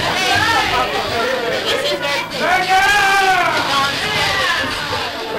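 Teenage girls talk excitedly close by.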